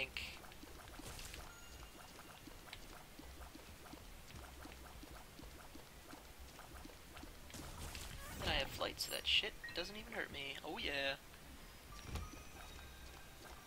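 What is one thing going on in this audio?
Small watery shots pop again and again.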